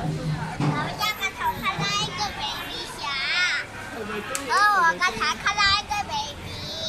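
A young boy speaks close by, with animation.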